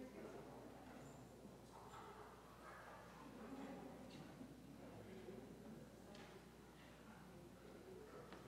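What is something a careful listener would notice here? Several adults murmur and talk quietly in a large echoing hall.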